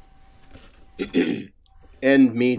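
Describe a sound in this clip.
An older man clears his throat over an online call.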